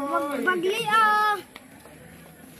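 A young child shouts in a high voice close by.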